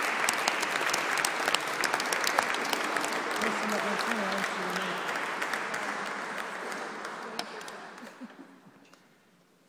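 An audience applauds in a large echoing hall and the applause slowly fades.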